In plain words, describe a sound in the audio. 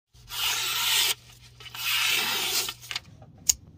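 A sharp blade slices through paper with a dry rasping hiss.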